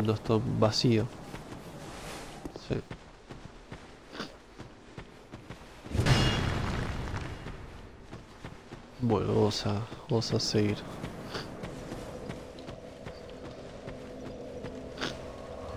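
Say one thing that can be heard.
Footsteps crunch over grass and stone.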